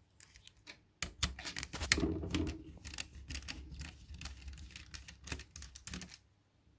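A screwdriver scrapes and grinds as it turns a small screw.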